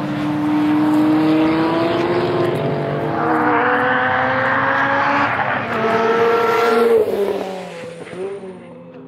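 A racing car engine roars closer and speeds past, its pitch dropping as it goes.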